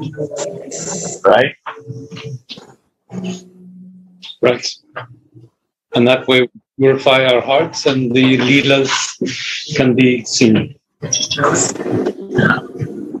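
An elderly man speaks calmly, heard through an online call.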